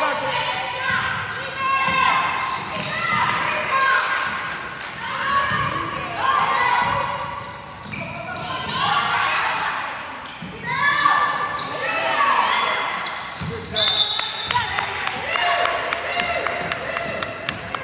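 Young women call out to each other in a large echoing gym.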